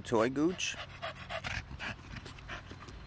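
A dog pants quickly close by.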